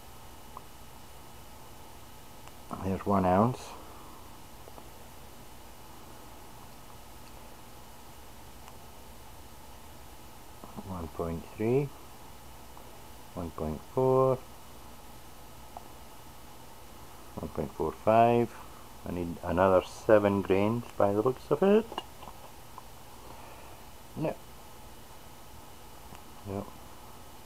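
A spoon scrapes softly in a bowl of salt.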